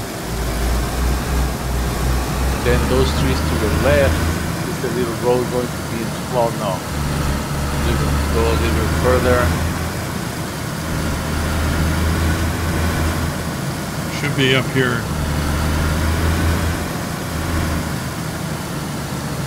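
A car engine rumbles steadily, rising and falling in bursts.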